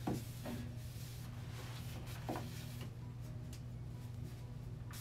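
A cloth rubs across a wooden shelf.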